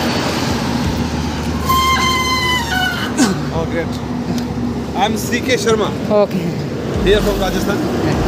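A middle-aged man speaks cheerfully close by.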